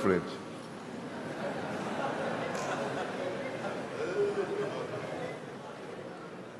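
A large crowd murmurs in a large hall.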